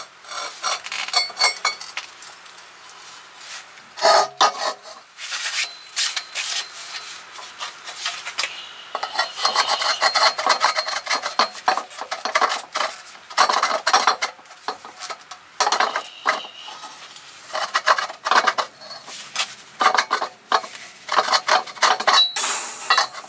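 A middle-aged man talks close by, explaining calmly.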